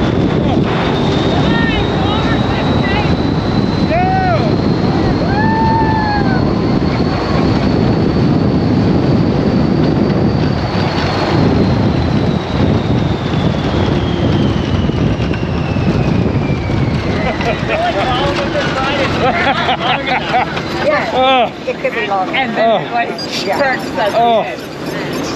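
Riders shriek and cheer excitedly nearby.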